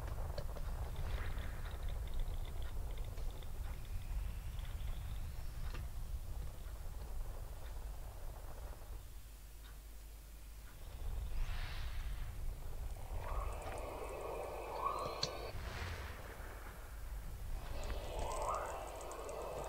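Missiles launch with sharp whooshing sounds.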